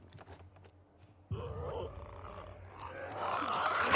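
A glass bottle shatters.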